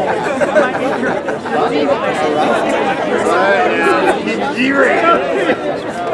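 A jazz band plays a lively tune with saxophones and brass.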